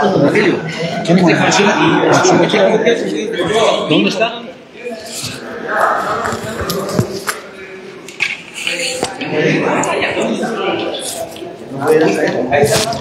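Several men talk nearby in an echoing hall.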